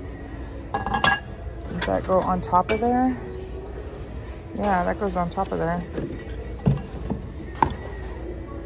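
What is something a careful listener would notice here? A ceramic figurine clinks against a glass bowl.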